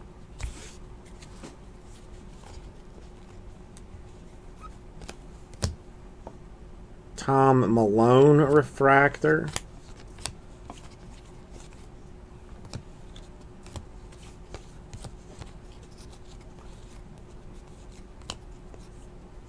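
Trading cards rustle and click softly as they are shuffled by hand.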